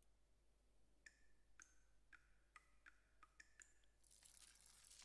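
Clockwork gears click as they turn.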